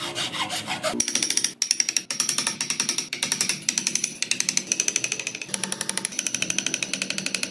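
A chisel scrapes and shaves wood in quick, even strokes.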